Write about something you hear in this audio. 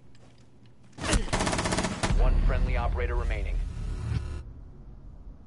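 Rapid gunshots ring out loudly.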